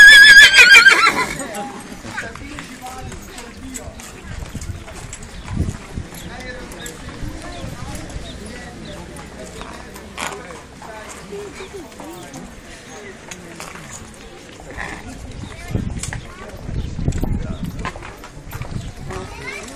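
People chatter softly outdoors.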